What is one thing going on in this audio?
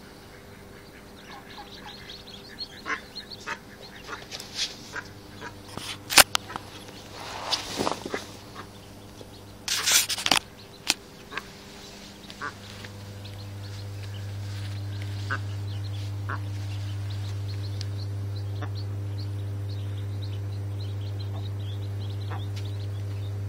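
Ducklings peep in high, quick chirps.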